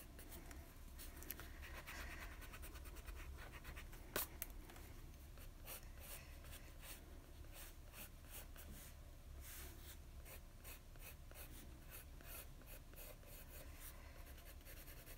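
A pencil scratches and scrapes across paper in quick strokes.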